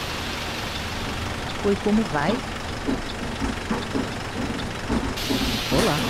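A diesel bus engine idles.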